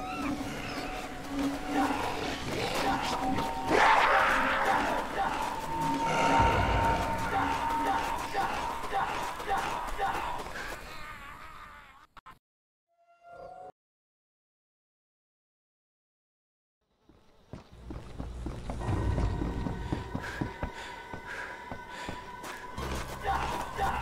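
Footsteps thud quickly over ground.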